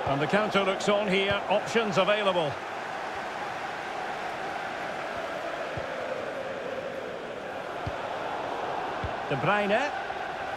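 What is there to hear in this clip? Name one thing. A large stadium crowd murmurs and cheers steadily in the distance.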